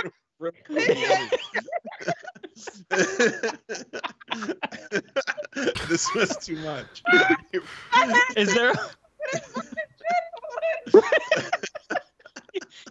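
A woman laughs loudly and talks with animation over an online call.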